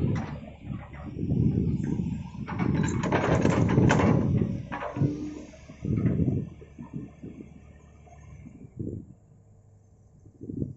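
A heavy excavator engine rumbles nearby.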